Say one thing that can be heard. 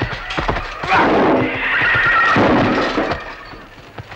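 Men shout loudly in a fight.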